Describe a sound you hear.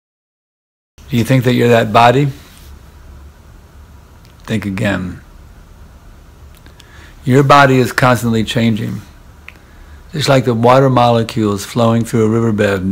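An elderly man speaks calmly and slowly, close to a microphone, with pauses.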